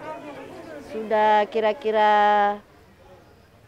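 A middle-aged woman speaks loudly and clearly close by.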